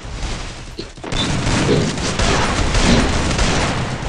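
Gunshots fire in rapid bursts nearby.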